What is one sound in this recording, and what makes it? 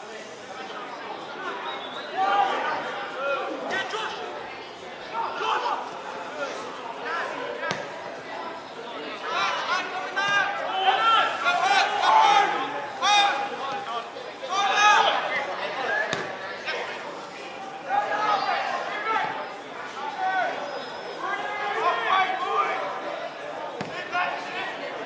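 Young players shout and call out to each other across an open outdoor field.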